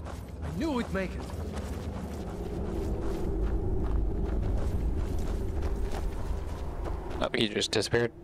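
Footsteps crunch on gravel.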